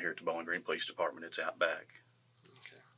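A man speaks in a low voice nearby.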